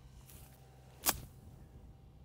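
A golf club strikes a ball out of long grass with a sharp crack.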